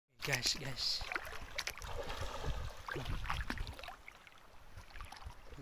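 Small waves lap gently against a muddy shore.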